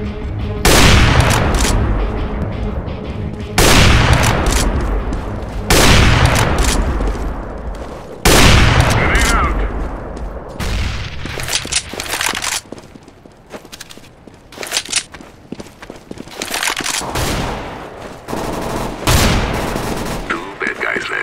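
A sniper rifle fires loud booming shots that echo away.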